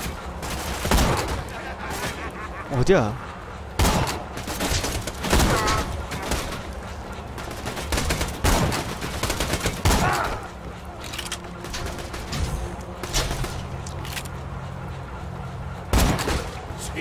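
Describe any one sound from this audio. A rifle fires loud single shots, one at a time.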